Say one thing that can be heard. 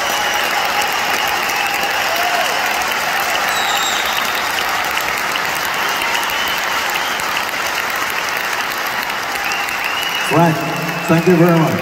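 A large crowd cheers and whistles loudly in a big echoing arena.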